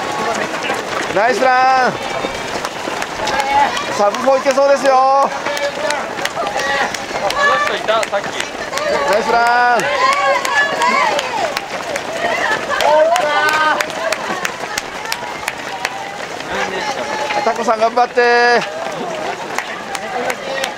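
Many runners' footsteps patter on pavement.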